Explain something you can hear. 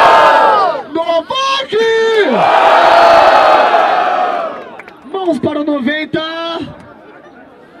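A young man raps loudly into a microphone, shouting with energy.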